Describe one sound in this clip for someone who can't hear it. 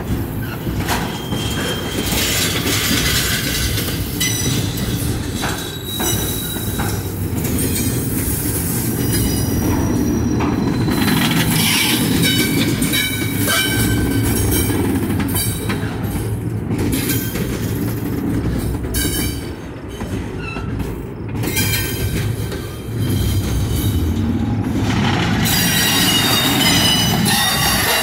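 A freight train rumbles loudly past close by.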